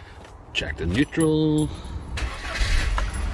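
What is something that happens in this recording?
An engine cranks and starts up.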